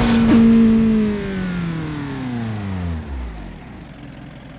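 A car engine winds down and fades.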